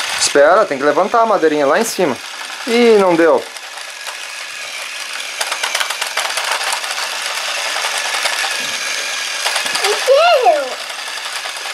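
A toy train's motor whirs as it runs along plastic track.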